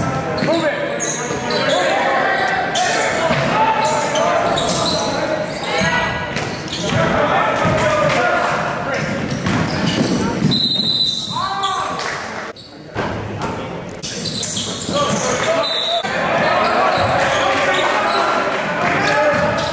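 Sneakers squeak sharply on a hard gym floor.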